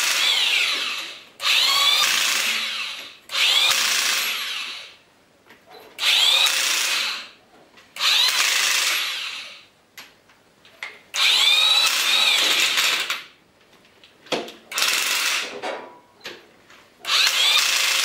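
A pneumatic impact wrench whirs and rattles in short bursts.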